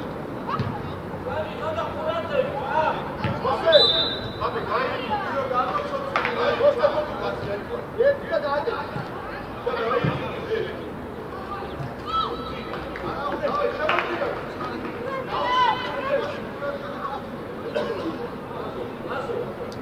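Young players shout and call to each other outdoors across an open pitch.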